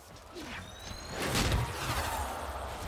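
A blade whooshes through the air and strikes with sharp clangs.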